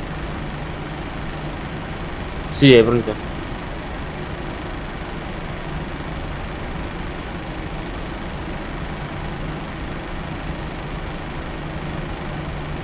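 Tyres rumble softly over the taxiway.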